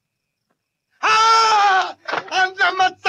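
A man cries out loudly.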